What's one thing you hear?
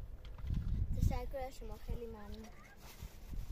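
A child speaks softly nearby.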